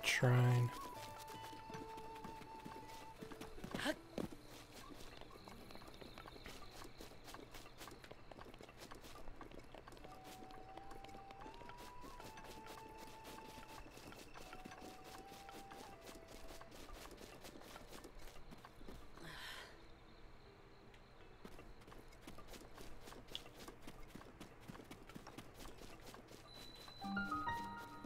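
Quick footsteps patter through grass.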